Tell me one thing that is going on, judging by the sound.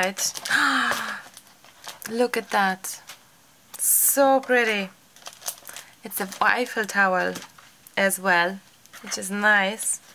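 Sheets of paper rustle as they are turned over.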